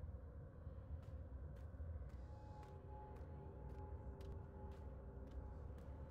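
Footsteps run at an even pace on a hard floor.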